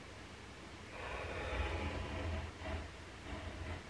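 A scoring tool scrapes along a sheet of card.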